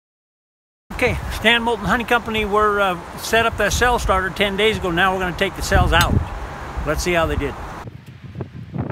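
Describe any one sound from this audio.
A man speaks calmly, close by, outdoors.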